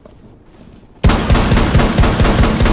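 Rapid gunshots fire in a burst.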